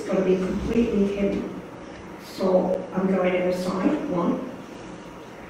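An elderly woman speaks calmly into a nearby microphone.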